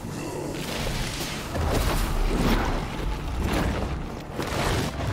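Falling stone crumbles with a deep, rumbling crash.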